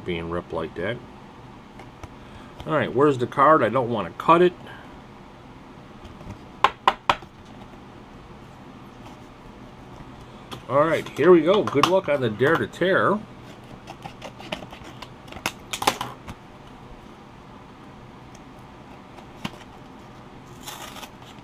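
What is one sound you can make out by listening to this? Thin cards slide and tap against each other as they are shuffled by hand.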